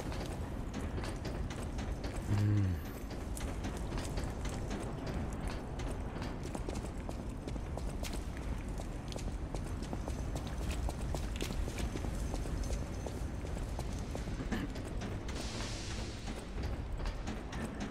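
Quick footsteps run over a hard floor.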